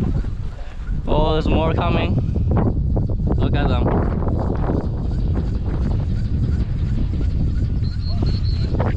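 A flock of snow geese honks as it flies overhead.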